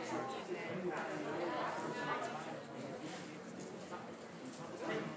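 Many voices of young women chatter and call out in a large echoing gym.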